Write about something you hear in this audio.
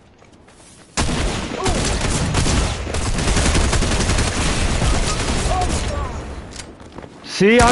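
Shotguns fire in rapid bursts.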